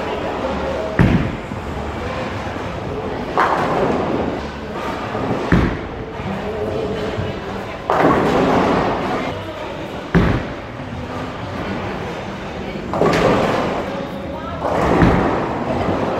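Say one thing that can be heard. A bowling ball thuds onto a wooden lane.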